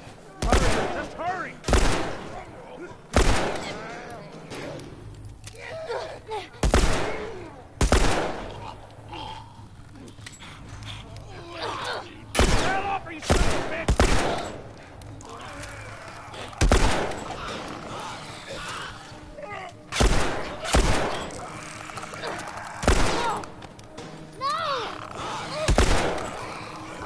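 Gunshots ring out sharply, one after another.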